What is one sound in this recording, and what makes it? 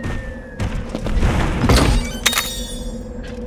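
A loud crash booms as a creature's body slams down.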